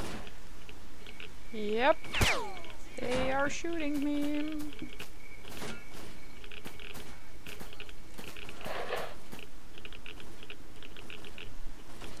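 Footsteps tread over rough ground outdoors.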